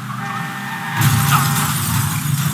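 A car crashes into a concrete barrier with a loud bang.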